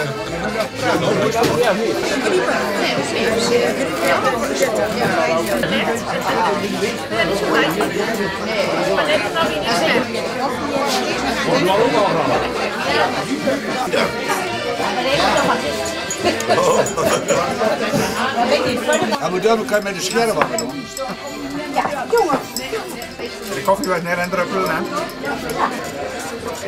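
Elderly men and women chat with animation in a crowded room.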